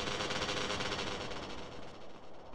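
A motorbike engine revs nearby.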